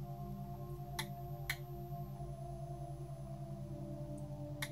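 Small parts click sharply as they are handled close by.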